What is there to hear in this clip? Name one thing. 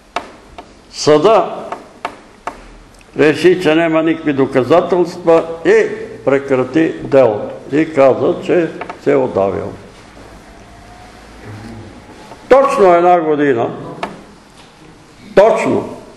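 An elderly man speaks calmly in a room with a slight echo.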